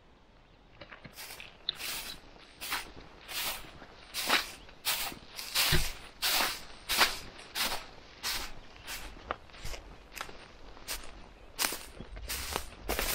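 Footsteps crunch through dry grass at a steady walking pace.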